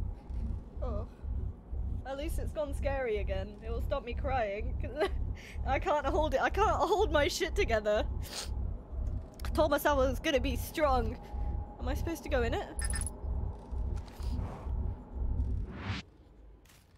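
A young woman sobs and speaks tearfully into a close microphone.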